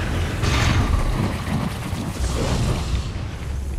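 Sparks crackle and spray.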